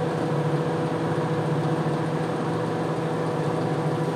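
Water sprays onto a soapy rug with a steady hiss.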